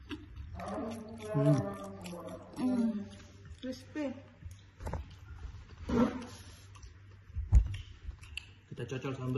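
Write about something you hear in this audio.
A young woman talks casually close by.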